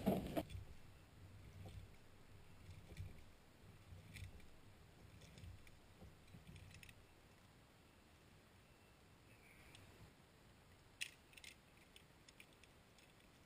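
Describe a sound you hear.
Climbing gear clinks and rattles on a rope.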